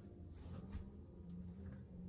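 A paintbrush dabs and swishes softly on paper.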